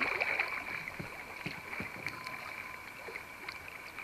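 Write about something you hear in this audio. Water laps gently against a kayak's hull.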